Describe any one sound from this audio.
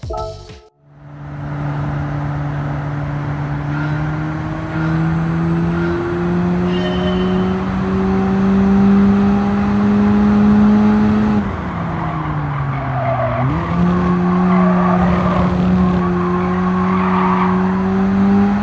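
A turbocharged four-cylinder sports car engine accelerates through the gears.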